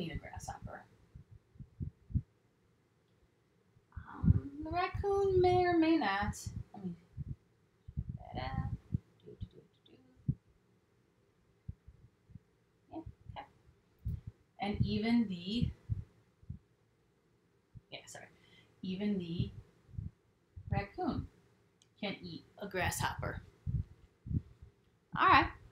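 A young woman speaks calmly close by, explaining in pauses.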